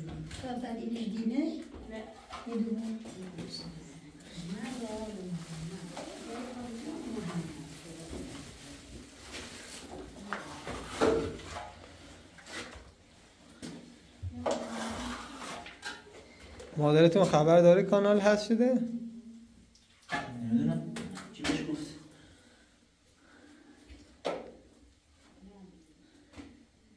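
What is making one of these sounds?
A trowel scrapes in a plastic basin.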